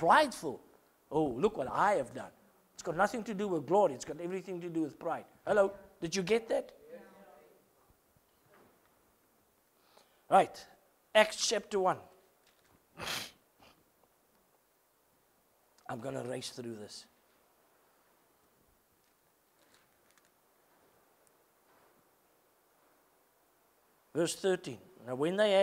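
A middle-aged man preaches with animation through a microphone, pausing often.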